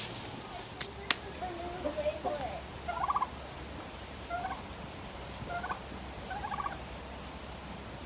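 Poultry cluck and call in short bursts.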